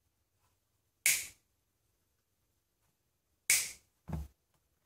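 Pliers snip through a wire with sharp clicks.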